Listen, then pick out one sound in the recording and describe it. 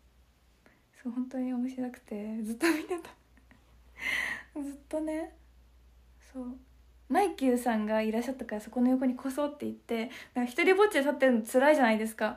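A young woman talks cheerfully and close up into a microphone.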